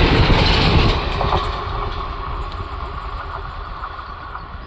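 A passenger train recedes into the distance.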